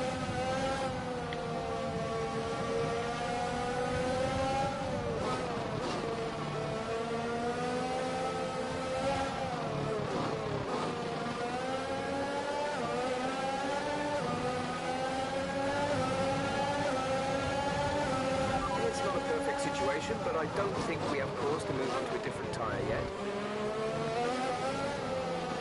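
A racing car engine whines loudly, rising and falling in pitch as it shifts gears and slows for corners.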